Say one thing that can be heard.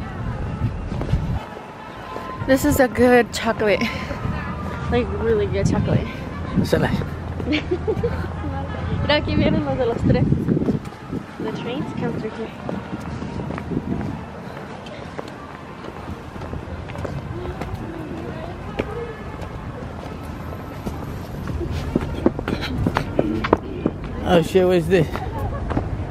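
Footsteps scuff on paving outdoors.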